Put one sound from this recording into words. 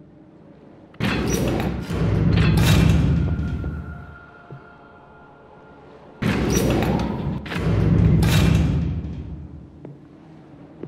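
A heavy crane motor rumbles loudly.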